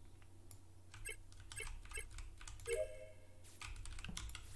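Short electronic beeps and chimes sound from a game.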